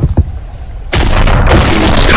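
Ice shatters and chunks clatter apart.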